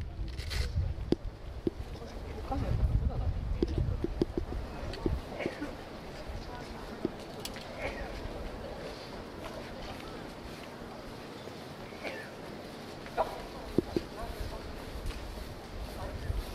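A crowd murmurs outdoors nearby.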